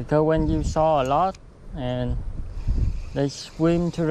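A fishing reel clicks and whirs as it is wound.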